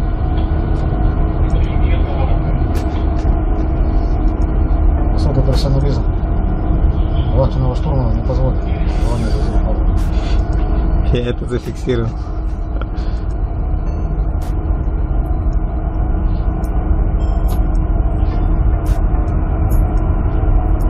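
A ship's engine drones steadily and deeply.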